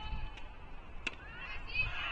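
A tennis ball is struck with a sharp pop.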